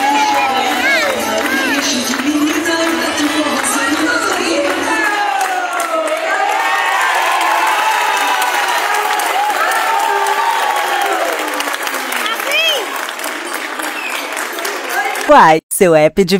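Young children shout and cheer in a large echoing hall.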